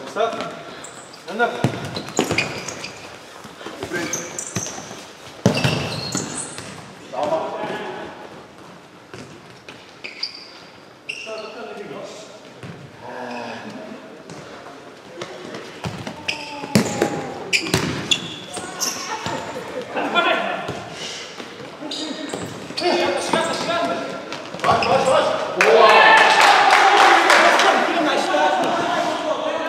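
Young men shout to each other across the hall.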